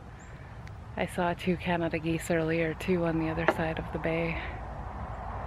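A middle-aged woman speaks cheerfully close by.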